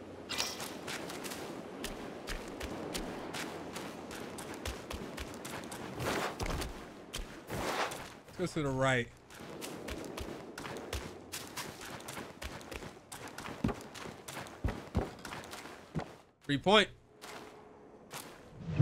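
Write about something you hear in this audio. Footsteps tap on stone and wooden planks.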